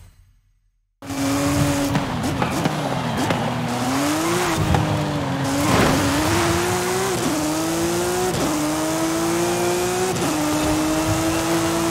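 A racing car engine roars, climbing in pitch and dropping briefly at each gear change.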